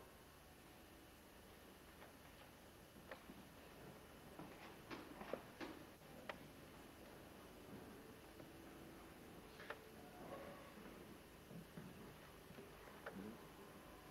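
An accordion plays softly in a hall.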